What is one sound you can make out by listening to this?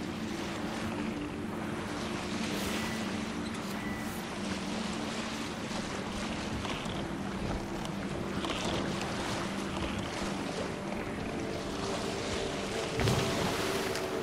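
Waves wash and splash against a small boat's hull.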